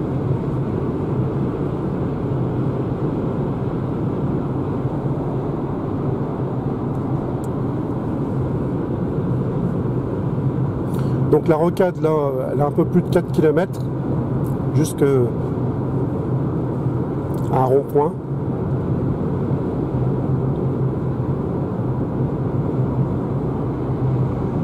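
A car hums steadily along at highway speed, with constant road and tyre noise from inside the cabin.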